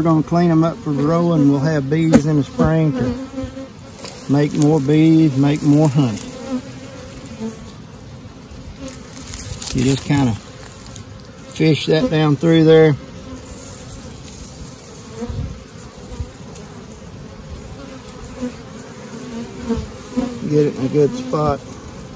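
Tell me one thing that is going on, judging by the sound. Bees buzz around an open hive.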